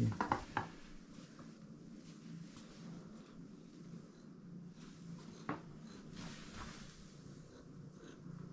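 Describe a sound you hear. A cat bats a small toy across a wooden floor.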